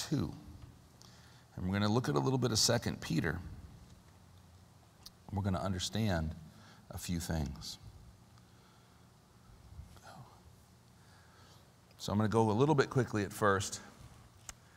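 A middle-aged man speaks calmly into a microphone in a room with a slight echo, pausing often.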